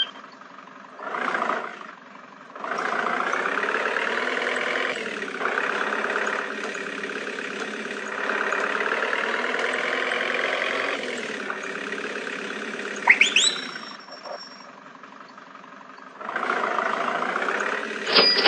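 A van engine hums and revs as it drives.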